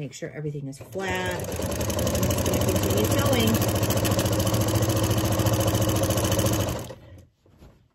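A sewing machine runs fast and steadily, its needle stitching through thick fabric.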